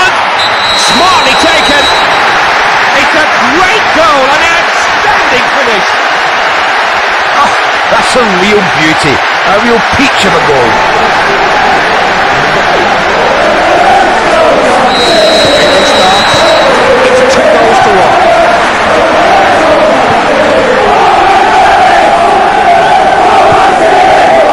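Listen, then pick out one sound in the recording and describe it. A large stadium crowd roars and cheers steadily.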